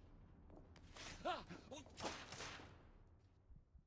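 A man grunts in a sudden scuffle.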